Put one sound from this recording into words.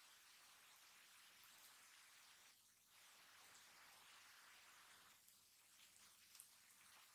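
Hands tear a piece of soft bread apart.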